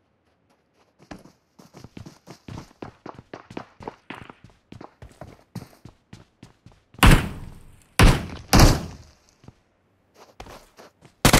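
Footsteps thud quickly across wooden boards.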